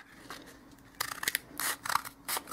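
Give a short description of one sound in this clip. Scissors snip through stiff material.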